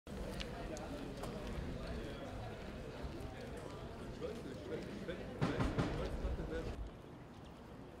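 Passersby murmur and walk in the distance outdoors.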